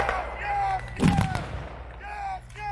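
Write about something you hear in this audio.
A distant explosion booms.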